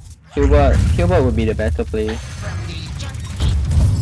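A game card lands on the board with a magical whoosh and thud.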